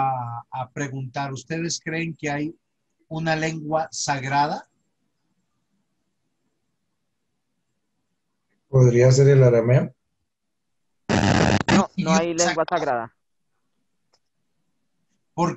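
A man speaks calmly over an online call, with long pauses.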